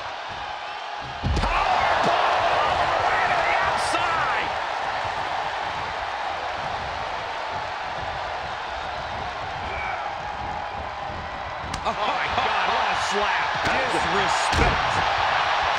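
A body slams onto a ring mat with a heavy thud.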